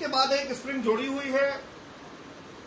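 A man speaks close by, explaining in a lecturing tone.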